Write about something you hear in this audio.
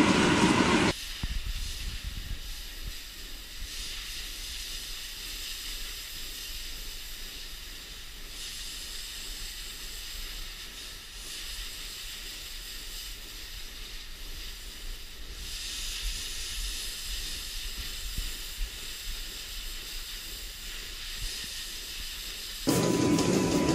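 A pressure washer sprays water with a steady hiss.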